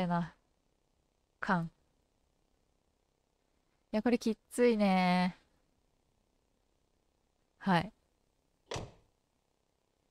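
A young woman speaks in short, expressive bursts into a microphone.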